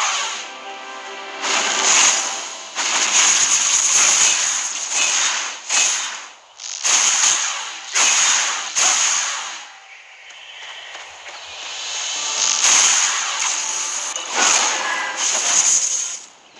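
Magic spells burst and crackle in repeated loud bursts.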